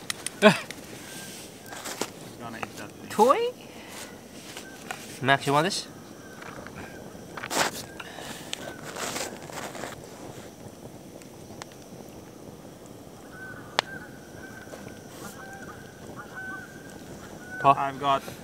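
A man speaks in short bursts, close by, outdoors.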